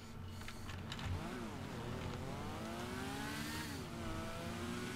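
A motorcycle engine hums and revs up.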